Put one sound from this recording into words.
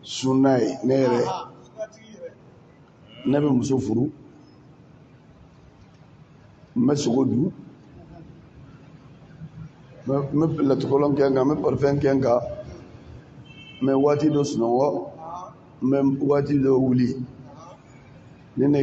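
An elderly man speaks slowly and solemnly into a microphone, in phrases with pauses.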